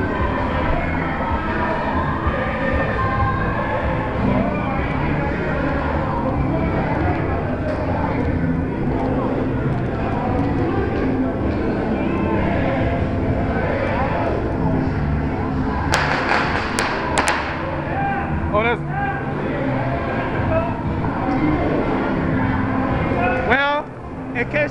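A crowd of people chatters and talks outdoors.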